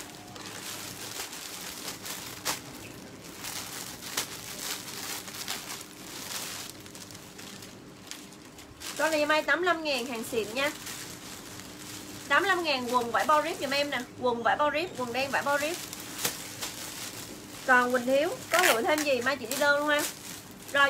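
Plastic wrapping and fabric rustle as clothes are handled.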